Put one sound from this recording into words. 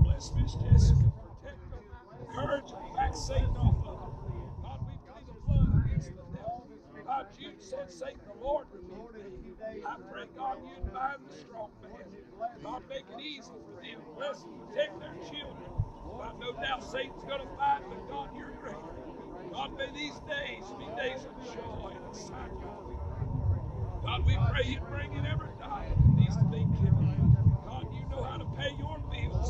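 A crowd of men and women murmurs and talks quietly outdoors.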